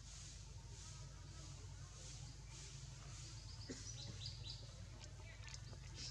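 Leaves rustle as a monkey climbs through branches.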